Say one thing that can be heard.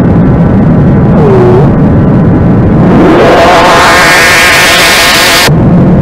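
An electric bass guitar plays loudly.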